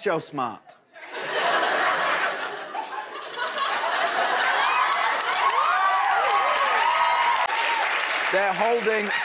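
An audience laughs and cheers loudly in a large hall.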